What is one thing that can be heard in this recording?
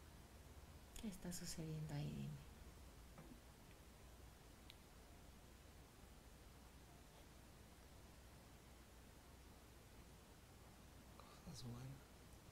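A woman speaks softly and calmly close by.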